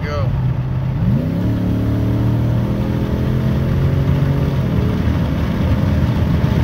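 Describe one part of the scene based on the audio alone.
A vehicle's engine roars louder and rises in pitch as it speeds up.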